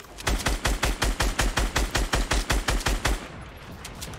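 A rapid burst of gunfire rattles loudly.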